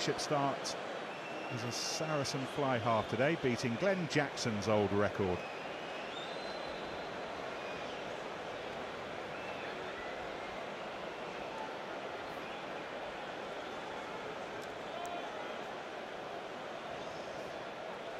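A large stadium crowd murmurs steadily in the open air.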